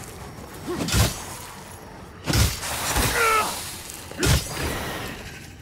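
Swords clash and strike in heavy blows.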